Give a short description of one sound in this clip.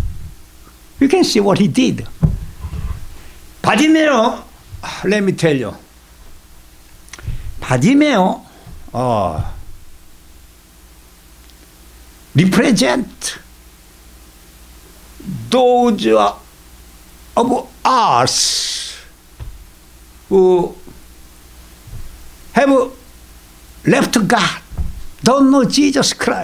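An elderly man speaks expressively into a microphone, in short phrases with pauses.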